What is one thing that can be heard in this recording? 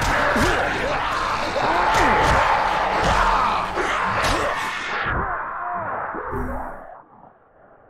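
Heavy blows thud and crash against a car.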